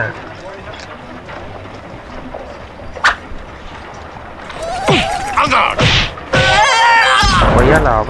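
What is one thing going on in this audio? Swords clash in a lively fight.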